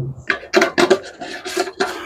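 A plastic cap twists on a metal fuel can.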